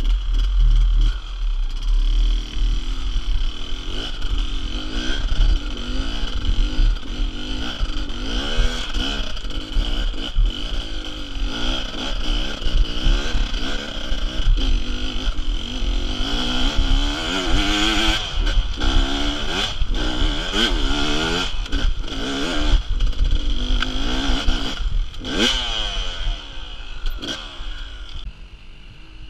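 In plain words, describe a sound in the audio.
A motorbike engine revs hard, rising and falling in pitch as it climbs.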